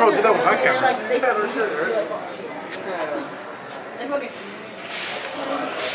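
A crowd of young people chatter and shout close by.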